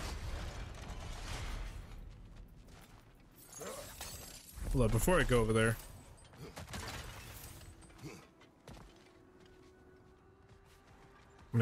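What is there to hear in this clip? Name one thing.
Heavy footsteps run on stone.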